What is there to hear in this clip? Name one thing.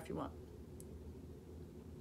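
A woman sips from a glass.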